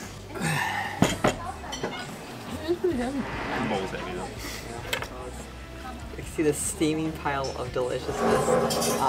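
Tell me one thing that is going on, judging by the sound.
Utensils clink against glass bowls.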